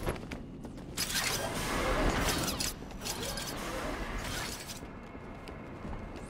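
Footsteps tread on a hard metal floor.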